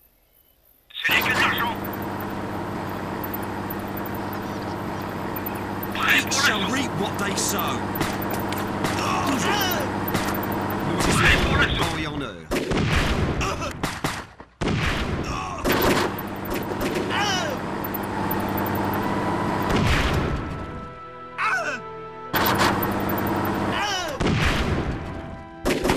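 Rifles and machine guns fire in bursts.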